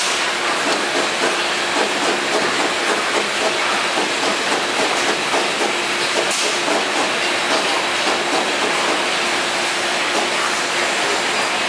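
Plastic bottles clatter along a conveyor.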